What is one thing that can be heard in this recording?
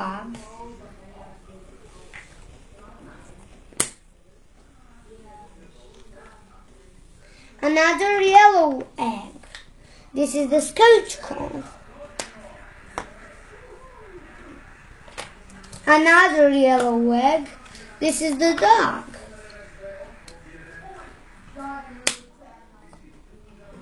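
Plastic toys click and clack as they are handled.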